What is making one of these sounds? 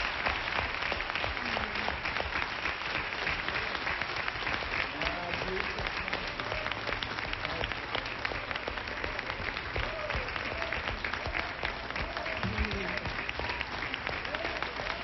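A large crowd applauds loudly in a big hall.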